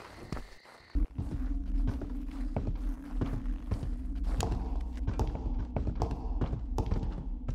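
Footsteps knock on a wooden floor at a steady walking pace.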